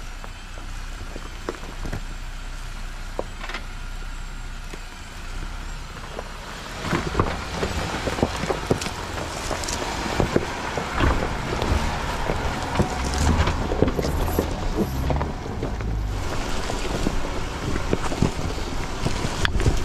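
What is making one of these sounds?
An off-road vehicle's engine rumbles as it crawls slowly over rocks.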